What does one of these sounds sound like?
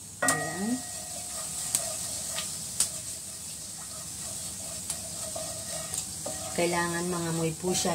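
A wooden spoon scrapes and taps against a pan.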